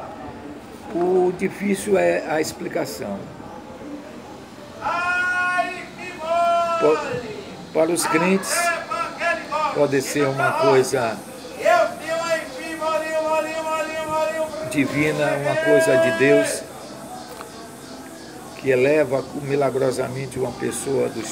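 An elderly man speaks calmly and close up.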